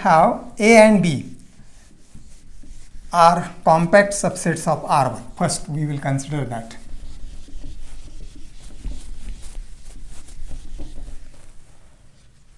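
A sponge wipes across a whiteboard.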